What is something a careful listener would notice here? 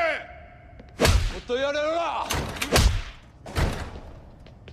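Heavy blows land on a man's body.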